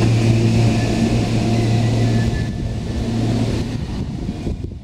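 A train rumbles and hums as it rolls along the tracks.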